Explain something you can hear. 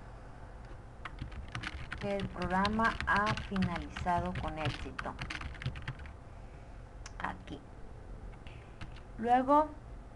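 Keys click rapidly on a keyboard.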